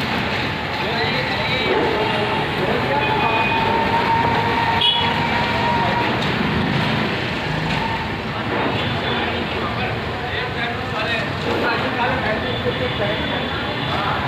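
A knife scrapes softly as it spreads filling inside buns.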